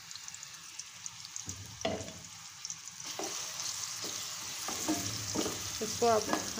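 Onions sizzle in hot oil in a pan.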